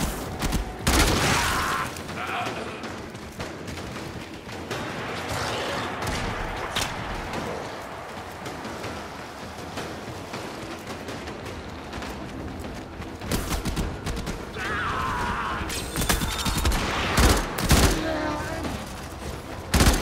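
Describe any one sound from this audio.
Gunshots and energy blasts crack out in bursts.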